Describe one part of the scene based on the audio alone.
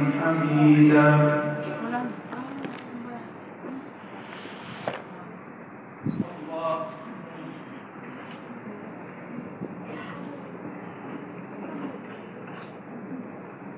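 Plastic wrapping rustles as it is handled.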